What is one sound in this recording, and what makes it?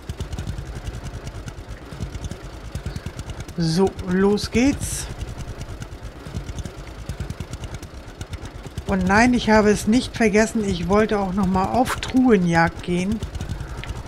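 A small tractor engine chugs steadily at low speed.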